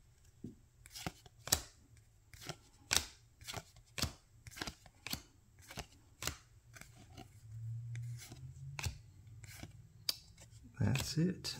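Trading cards click and rustle as they are flipped through by hand.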